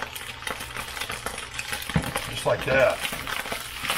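Sauce is scraped from a bowl into a pan.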